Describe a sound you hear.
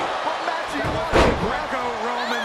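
A wooden stick strikes a body with a loud smack.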